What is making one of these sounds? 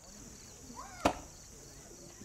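An axe strikes a log with a sharp thud.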